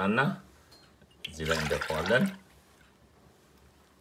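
Milk pours and splashes into a glass bowl.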